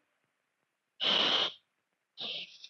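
A man hushes with a long shh.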